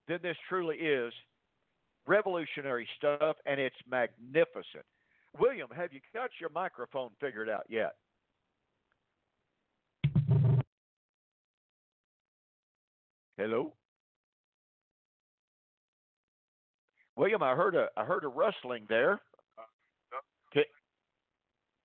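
A man speaks steadily through a microphone, with short pauses.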